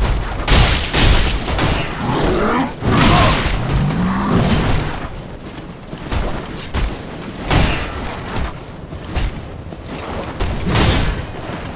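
Metal weapons clash and strike with heavy thuds.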